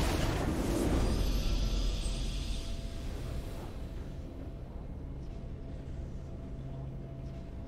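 A triumphant fanfare swells.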